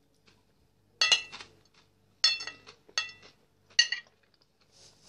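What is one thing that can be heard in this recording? A metal spoon clinks sharply against a glass plate.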